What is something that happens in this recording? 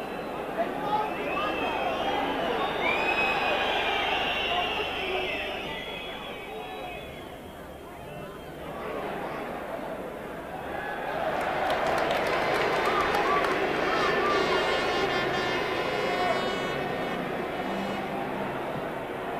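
A large stadium crowd roars and shouts outdoors.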